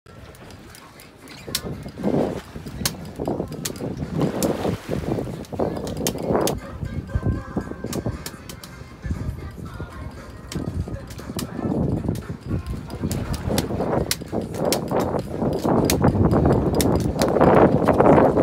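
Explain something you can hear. Wind blows outdoors on open water.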